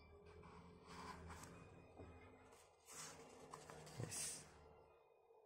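Paper pages rustle and flap as a book's pages are turned.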